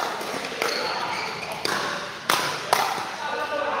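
Paddles pop sharply against a plastic ball in a quick rally.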